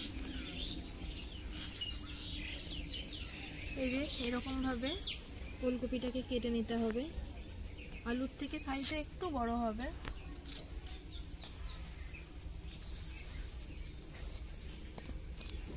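A blade slices through crisp vegetable with short crunchy cuts.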